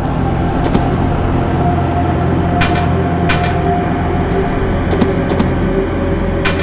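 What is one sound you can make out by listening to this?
Short electronic blips sound now and then.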